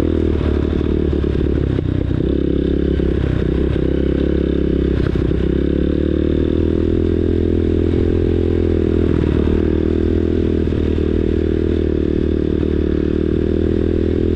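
Tyres bump over rough grass and mud.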